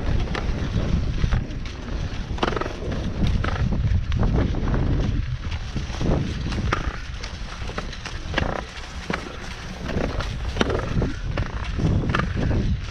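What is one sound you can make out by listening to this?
Skis scrape and shuffle on packed snow.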